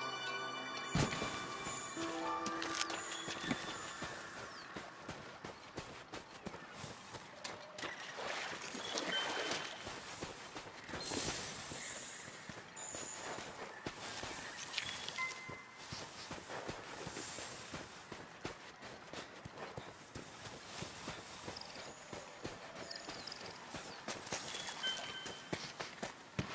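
Footsteps crunch quickly over rough ground.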